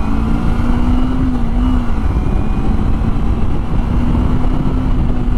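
Wind rushes loudly past a rider.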